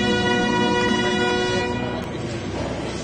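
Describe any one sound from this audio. A pipe organ plays a loud sustained chord in a large echoing hall.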